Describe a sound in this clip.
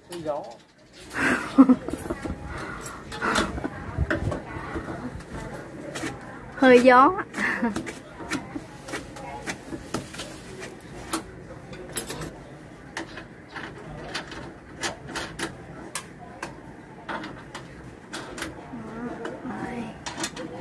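Metal tools click and tap against pipe fittings close by.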